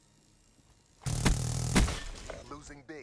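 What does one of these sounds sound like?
A gun fires a loud burst of shots.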